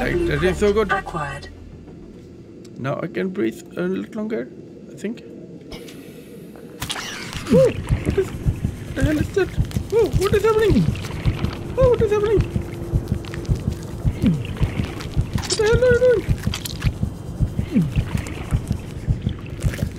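An underwater scooter whirs as it pushes through water.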